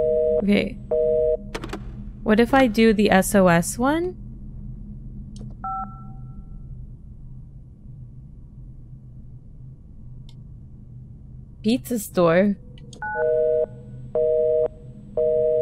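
A phone rings with a repeating electronic tone.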